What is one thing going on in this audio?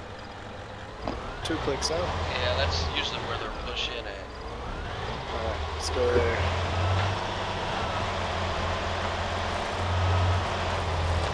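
A car engine hums and rumbles as the car drives along.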